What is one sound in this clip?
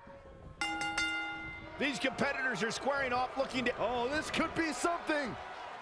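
A large crowd cheers and shouts in an echoing arena.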